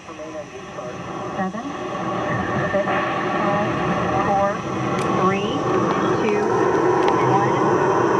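A rocket engine roars with a deep rumble that grows steadily louder.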